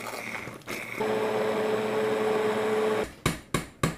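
An immersion blender whirs steadily as it purées soup.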